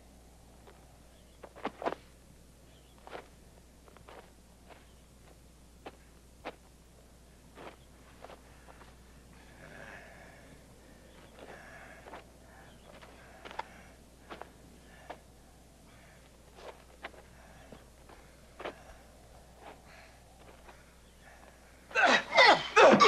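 Boots scuff and crunch on gravel.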